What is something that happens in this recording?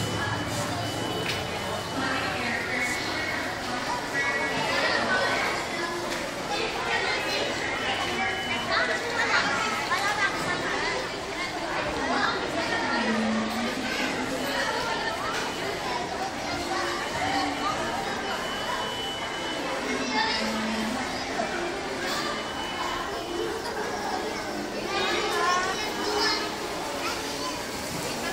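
Ride-on animal toys whir as they roll across the floor.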